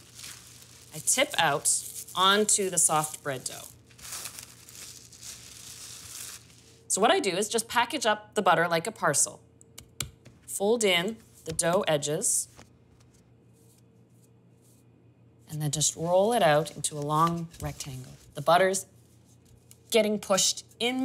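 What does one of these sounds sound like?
A woman speaks calmly and clearly into a close microphone.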